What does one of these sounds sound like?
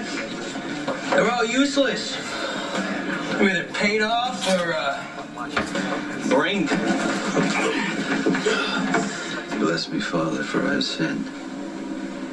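A young man speaks tensely, heard through a television speaker in a room.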